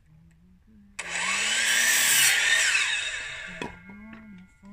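A power miter saw whines loudly as it cuts through wood.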